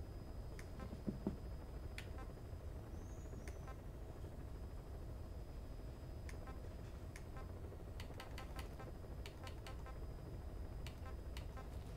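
Short electronic menu clicks sound repeatedly.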